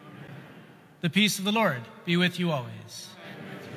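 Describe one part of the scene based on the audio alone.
A man chants through a microphone in a large, echoing hall.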